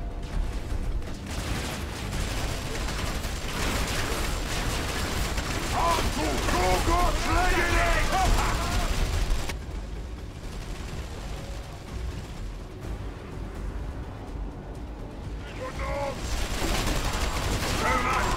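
Guns fire and explosions rumble in a noisy battle.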